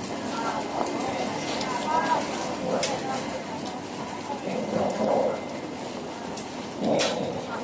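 Water bubbles and trickles in tubs from air and water tubes.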